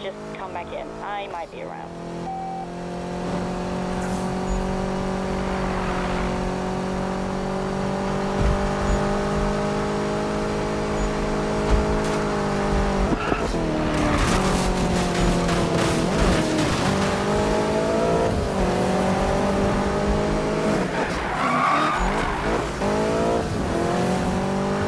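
A sports car engine roars at full throttle.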